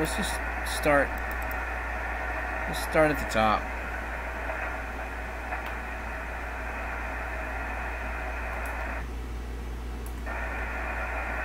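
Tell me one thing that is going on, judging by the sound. A radio receiver hisses with steady static and faint warbling tones.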